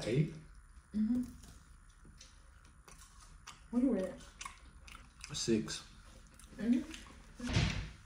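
A young man chews and crunches food.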